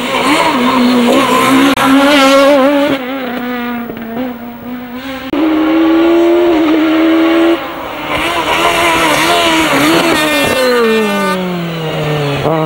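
A rally car engine revs up and down as gears shift.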